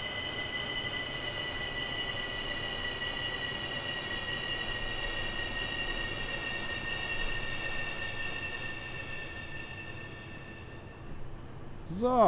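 An electric train motor whines steadily, then fades as the train slows.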